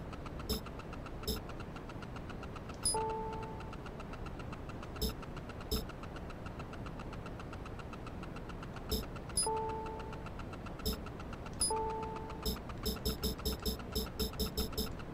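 Short menu clicks and beeps sound as selections are made, with a rapid run of clicks near the end.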